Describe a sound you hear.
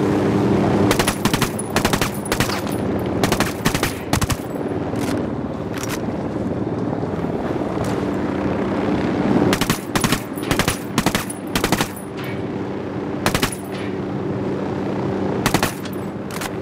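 Suppressed rifle shots crack in short bursts.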